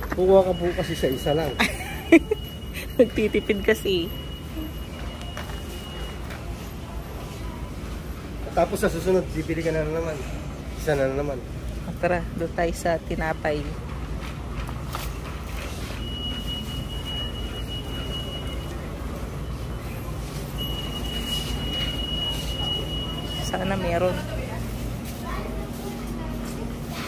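Indoors, a steady low background hum of a busy shop.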